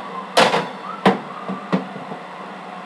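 A metal oven rack rattles as it slides in.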